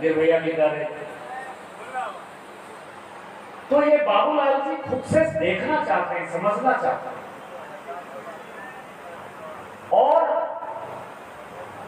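A middle-aged man speaks forcefully into a microphone through loudspeakers.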